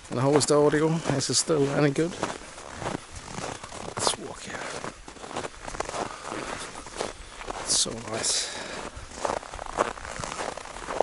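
A man speaks calmly and close to the microphone.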